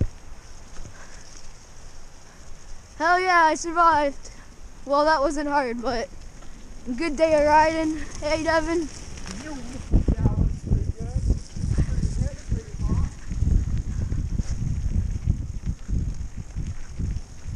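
Bicycle tyres roll and rattle over a bumpy dirt track.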